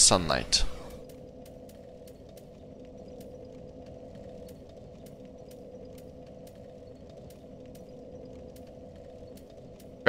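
Soft menu clicks tick at a steady pace.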